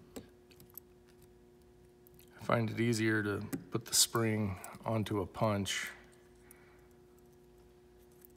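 Small metal parts click and scrape softly as they are fitted together by hand.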